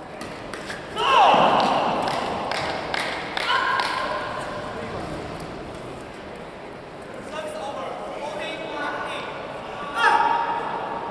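Sneakers squeak loudly on the court floor.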